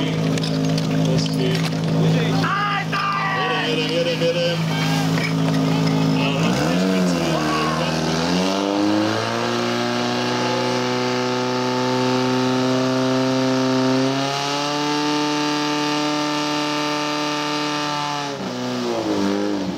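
A motor pump engine roars steadily, then revs up and holds a high drone.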